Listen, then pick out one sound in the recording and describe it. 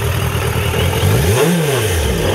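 A motorcycle engine revs up sharply and drops back.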